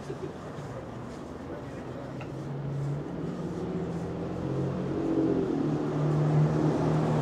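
Footsteps tap on a pavement close by.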